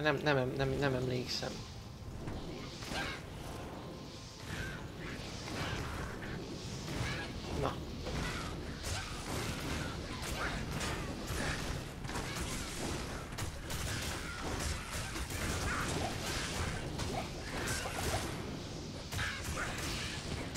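Weapons clash in a fight.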